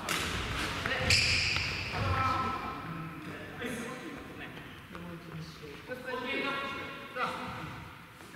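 Sports shoes squeak sharply on a hard floor.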